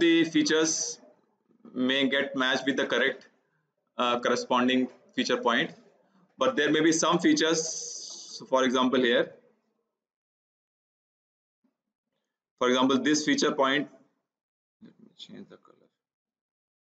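A man lectures calmly into a close microphone, with pauses.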